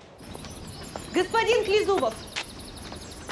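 A young woman calls out from a distance outdoors.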